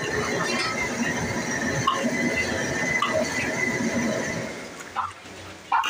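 Oil sizzles and crackles loudly in a hot wok.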